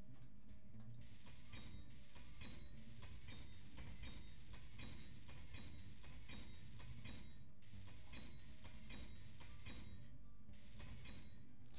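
A welding tool buzzes in short, repeated bursts.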